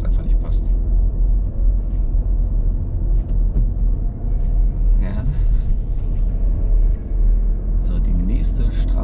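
A man talks calmly from the driver's seat, close by.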